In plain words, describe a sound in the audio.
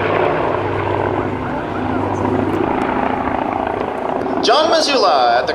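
A propeller plane's engines drone overhead.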